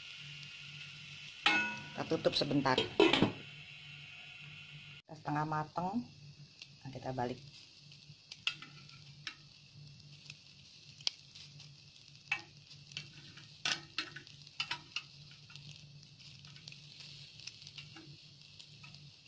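Patties sizzle steadily as they fry in a pan.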